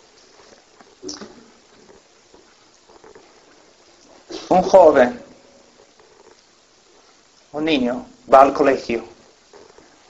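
A man speaks slowly and with long pauses through a microphone.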